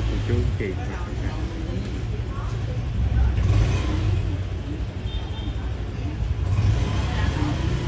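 A baby babbles.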